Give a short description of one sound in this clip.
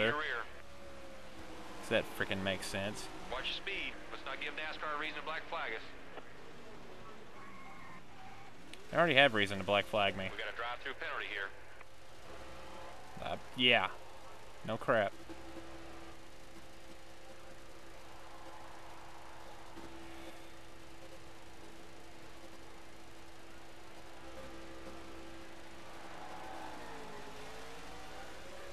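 A race car engine drones steadily at speed.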